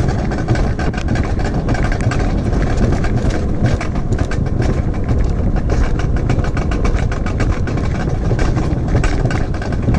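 A sled rumbles and rattles fast along a metal track.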